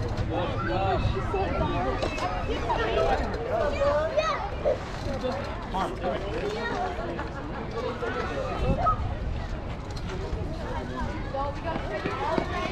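Many voices of children and adults chatter and call out outdoors.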